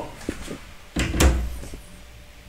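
A cupboard door bangs shut.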